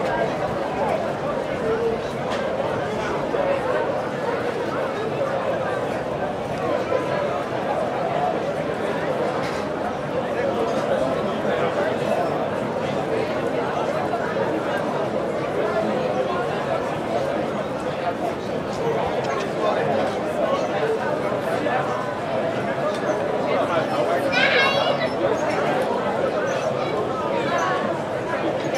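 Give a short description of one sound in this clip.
A large crowd of men and women chatters all around outdoors.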